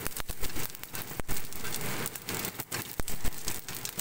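Chopsticks scrape and stir food in a pan.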